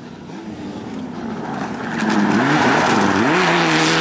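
Gravel sprays and rattles under spinning tyres.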